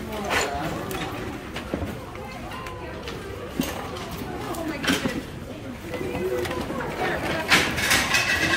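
A crowd of people chatter all around indoors.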